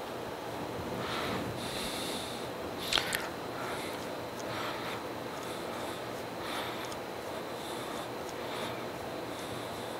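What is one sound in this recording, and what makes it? A metal point scratches lightly across steel in short strokes.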